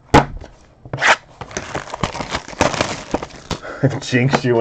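Cardboard boxes rustle and tap as they are handled.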